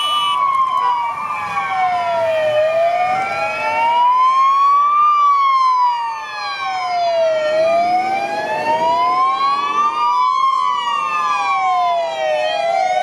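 Several sirens wail up and down, close by.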